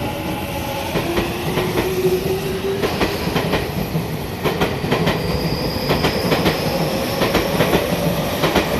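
Train wheels clatter over rail joints, faster and faster.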